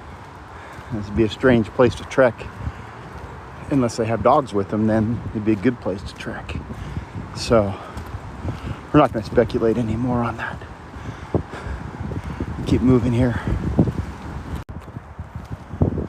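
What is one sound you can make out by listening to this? A dog's paws patter on a gravel path.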